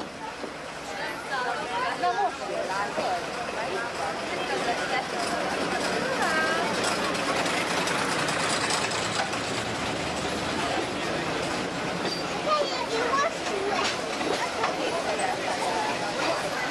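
Train wheels squeal on a curve.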